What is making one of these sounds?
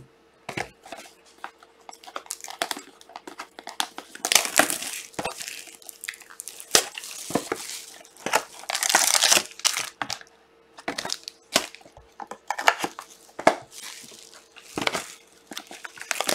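Cardboard boxes knock and slide against each other.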